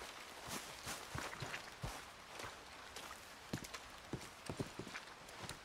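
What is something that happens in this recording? Boots tread on wet ground and wooden boards.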